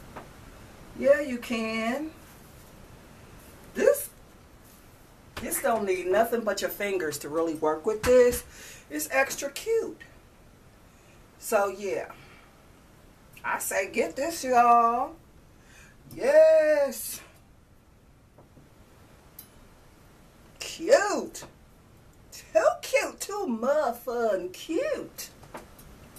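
A middle-aged woman talks calmly close by, in short bursts with pauses.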